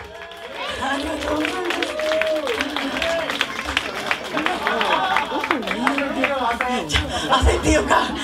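A young woman sings into a microphone over the band.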